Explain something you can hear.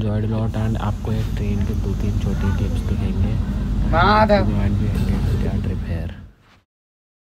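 Several people talk nearby.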